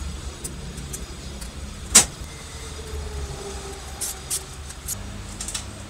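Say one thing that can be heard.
A screwdriver scrapes on metal.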